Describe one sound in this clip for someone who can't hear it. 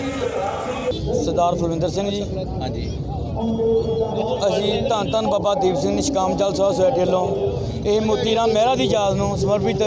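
A man speaks steadily into microphones, close by.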